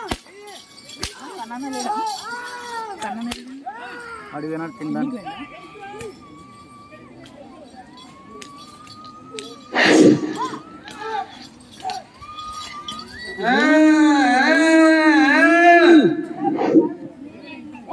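A man calls out loudly through a loudspeaker outdoors.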